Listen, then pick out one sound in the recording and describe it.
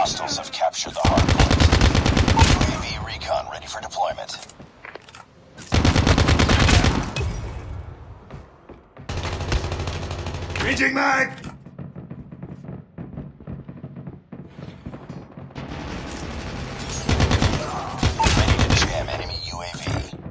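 An automatic rifle fires rapid bursts in a video game.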